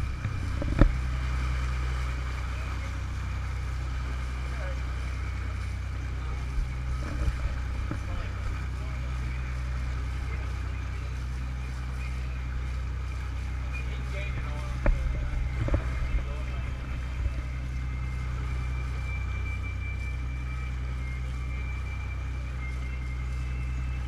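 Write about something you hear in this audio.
Waves splash against the side of a moving boat.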